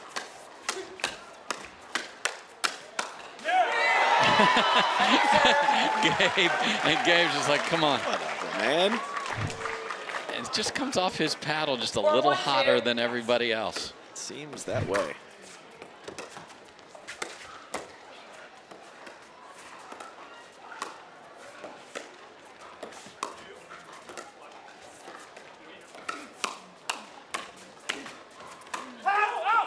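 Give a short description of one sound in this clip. Paddles strike a ball with sharp, hollow pops in a quick rally.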